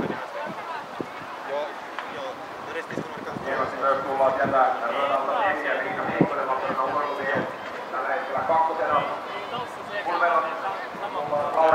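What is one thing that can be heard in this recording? A man announces through a loudspeaker outdoors.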